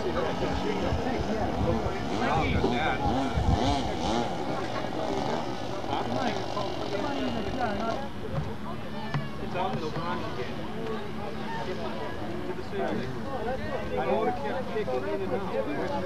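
A powered paraglider's small engine drones overhead in the distance.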